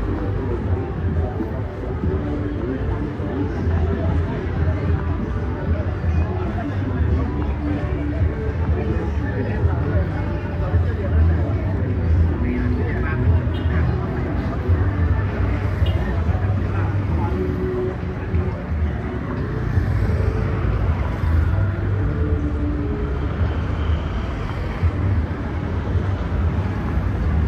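Busy street noise murmurs steadily outdoors.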